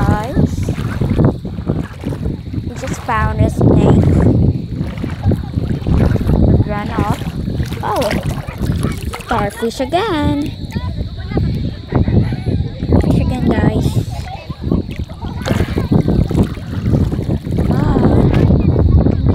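Bare feet splash through shallow water.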